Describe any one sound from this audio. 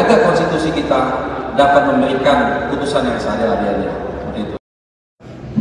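A man speaks calmly into microphones, close by.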